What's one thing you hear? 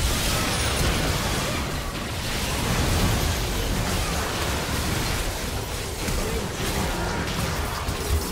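Video game battle sound effects crackle and blast as spells and attacks go off.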